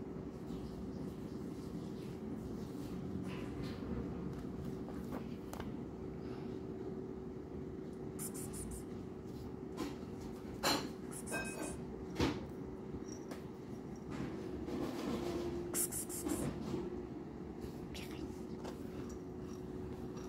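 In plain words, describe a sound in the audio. A toy rustles and scrapes under a rug.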